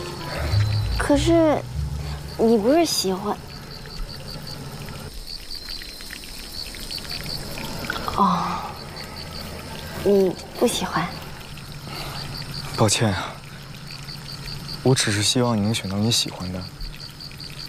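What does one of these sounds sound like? A young woman speaks gently nearby.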